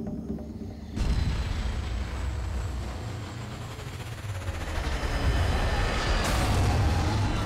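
A flying craft's engines roar loudly as it swoops close overhead.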